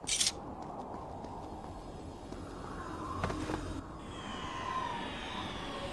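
A jet of flame bursts out with a roar.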